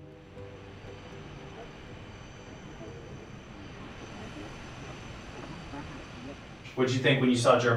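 A steady engine drone fills an aircraft cabin.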